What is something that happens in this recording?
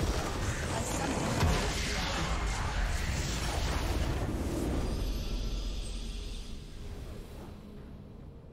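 A large explosion rumbles and crackles loudly, then fades.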